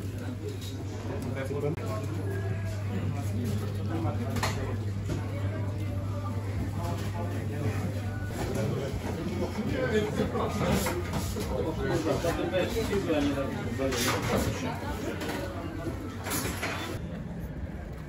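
A crowd of people chatters indoors.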